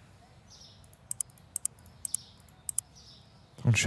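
Computer keys click.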